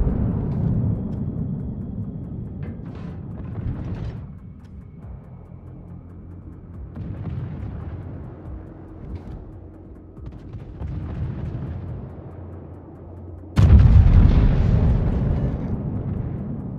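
A warship's engines rumble low over the sea.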